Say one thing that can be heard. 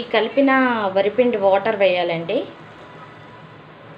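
Liquid pours into a hot wok.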